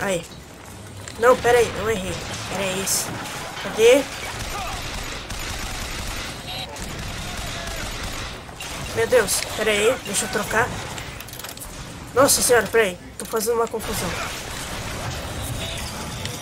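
Gunfire bursts in quick rapid shots.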